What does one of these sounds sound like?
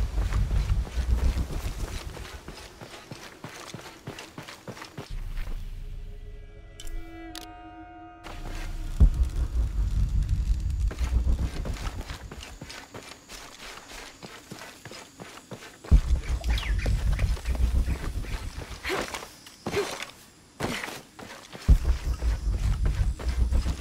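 Footsteps run along a stone path.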